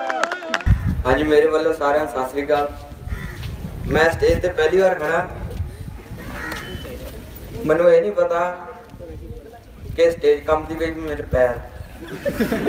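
A man speaks with animation through a loudspeaker, echoing outdoors.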